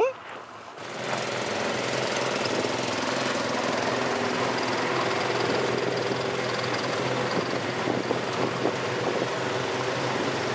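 Snowmobile engines idle with a steady hum outdoors.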